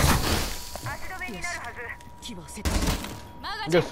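A few gunshots crack in quick succession.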